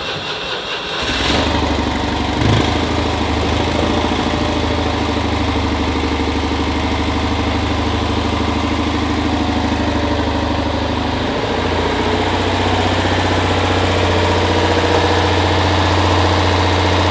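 A small car engine idles with a steady, rattling hum, heard up close.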